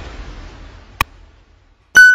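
A mouse button clicks once.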